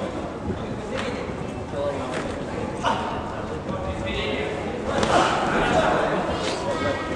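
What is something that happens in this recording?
Boxing gloves thud as boxers punch.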